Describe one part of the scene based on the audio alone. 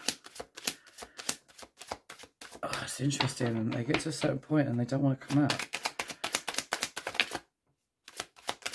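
Playing cards riffle and flap quickly as they are shuffled close by.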